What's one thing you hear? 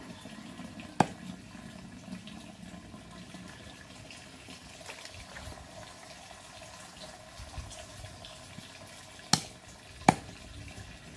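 A knife chops sharply on a wooden block.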